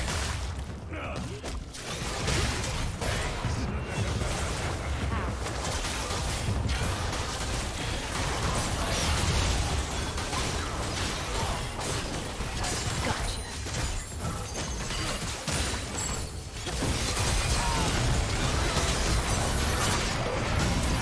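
Magic spells burst and crackle in a fast fantasy battle.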